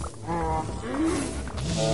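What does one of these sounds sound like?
A fiery blast bursts and crackles.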